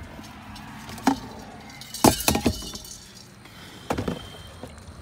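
Something plastic knocks and clatters as a hand moves it around.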